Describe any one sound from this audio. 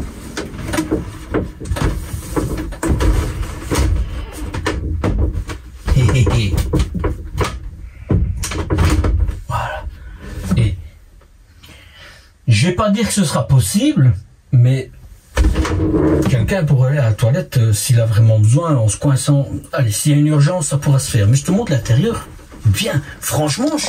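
A shower door rattles and slides on its track.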